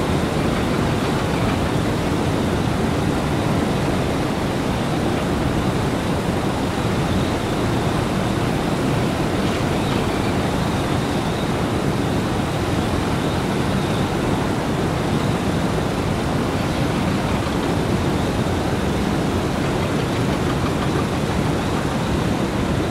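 A jet engine roars steadily as an airliner taxis nearby.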